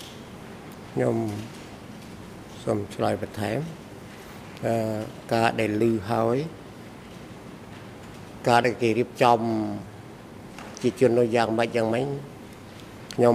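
An older man speaks slowly and haltingly into a microphone.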